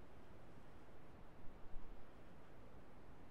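Fingers lightly brush a microphone.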